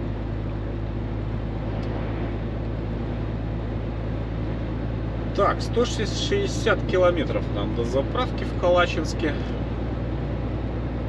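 A truck engine drones steadily from inside the cab.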